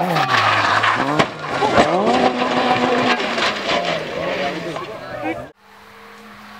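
A rally car engine roars and revs hard as the car speeds past close by.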